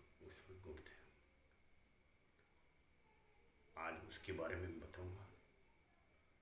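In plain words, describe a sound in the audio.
An elderly man speaks calmly and slowly into a nearby microphone, with pauses.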